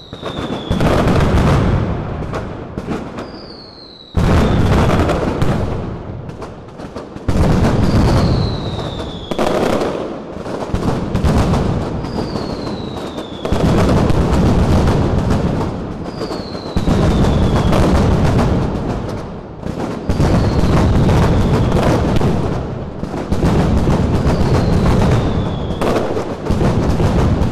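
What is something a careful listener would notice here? Rockets whistle and burst with sharp bangs overhead.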